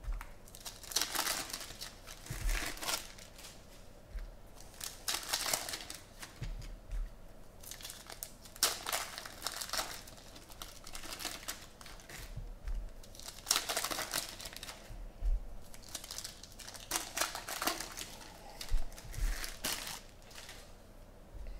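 Foil card packs crinkle and tear as hands rip them open.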